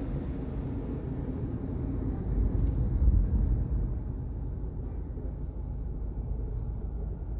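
A car engine idles with a low, steady rumble inside the car.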